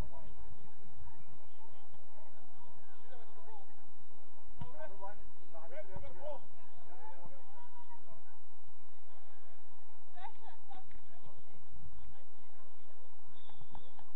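Young players shout and call to each other across an open field, heard from a distance.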